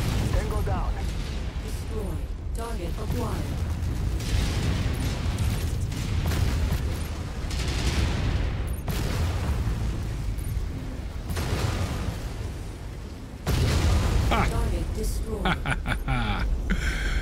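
A deep mechanical rumble hums steadily.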